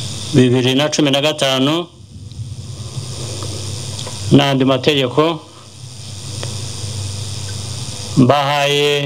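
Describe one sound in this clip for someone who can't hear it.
A man speaks slowly and formally into a microphone over a loudspeaker, with pauses between phrases.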